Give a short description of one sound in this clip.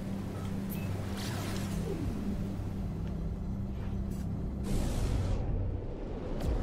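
A rushing whoosh swells as a ship jumps to high speed.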